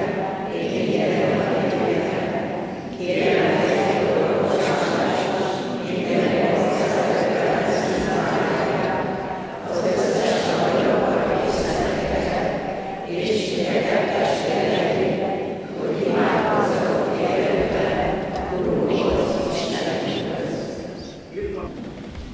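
A congregation of men and women sings together in a large echoing hall.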